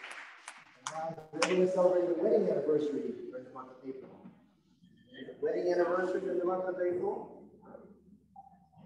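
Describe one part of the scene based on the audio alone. An elderly man reads aloud into a microphone.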